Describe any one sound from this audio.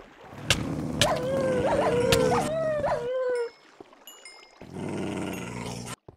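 A sword strikes a skeleton with sharp hits.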